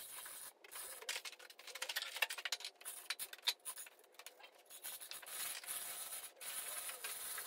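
A metal chain hoist rattles and clinks.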